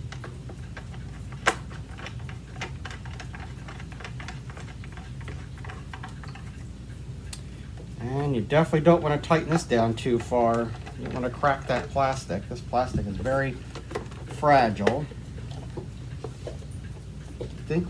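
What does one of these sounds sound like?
Plastic parts of a vacuum cleaner head click and rattle in someone's hands.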